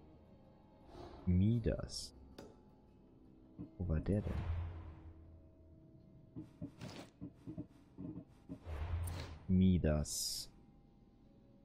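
Soft whooshing menu sounds play as pages change.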